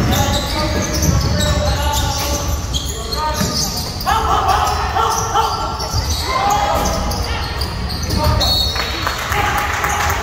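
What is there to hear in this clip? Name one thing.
Spectators and players shout and call out, echoing in a large gym.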